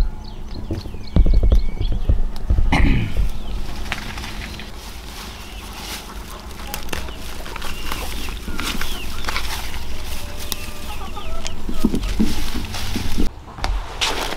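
Leafy plants rustle as they are pulled from the soil.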